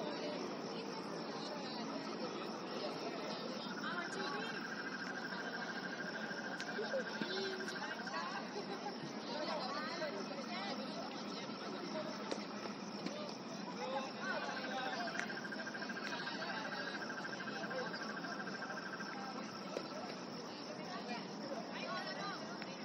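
Players shout and call out across an open field at a distance.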